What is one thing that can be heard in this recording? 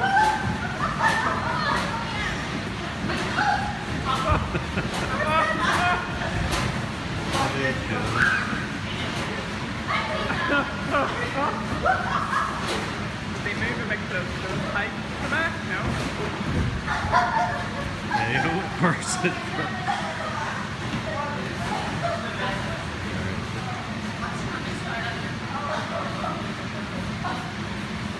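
Bodies thump and bounce on an inflatable castle.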